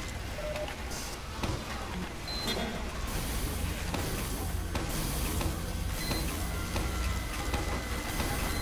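Gunfire from a video game rattles steadily.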